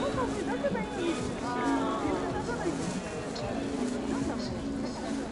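A large crowd of men and women chatters and murmurs outdoors.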